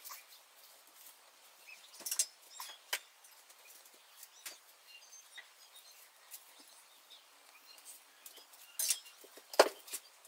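A brush strokes through long hair with soft, scratchy swishes.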